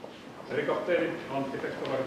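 A man's footsteps tap on a hard floor.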